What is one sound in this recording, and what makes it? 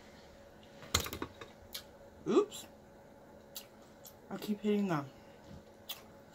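A woman chews and slurps food close to a microphone.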